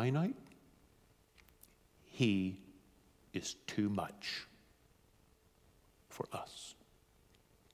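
A man speaks with animation into a microphone, with long pauses.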